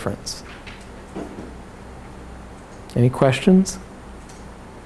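A middle-aged man speaks calmly and briefly, close by.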